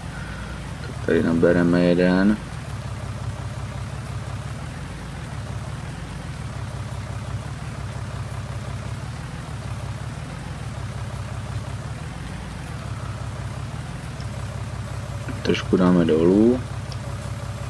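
A hydraulic loader whines loudly as it lifts and lowers.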